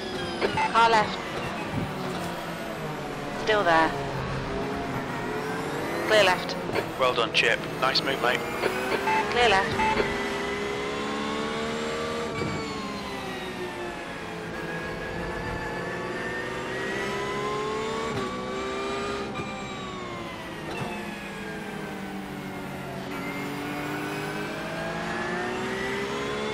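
A race car engine revs and shifts gears throughout.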